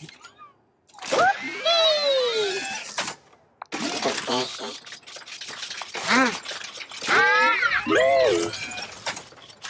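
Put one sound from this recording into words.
A small robot chirps and whistles in quick, gliding electronic beeps.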